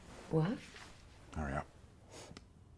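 A woman speaks urgently over an online call.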